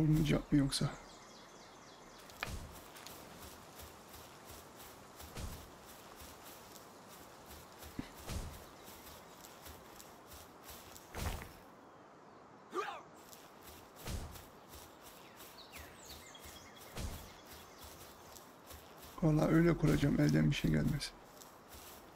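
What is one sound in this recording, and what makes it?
Footsteps rustle steadily through grass.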